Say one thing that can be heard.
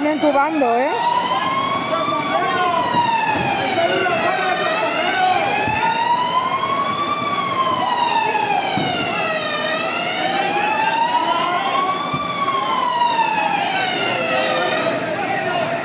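A siren wails loudly nearby, rising and falling slowly.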